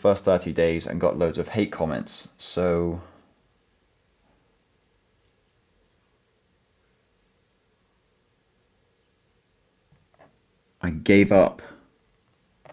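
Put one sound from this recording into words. A young man speaks calmly and clearly, close by.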